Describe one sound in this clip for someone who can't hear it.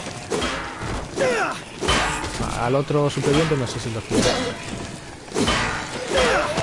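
Heavy blows thud and smack against bodies.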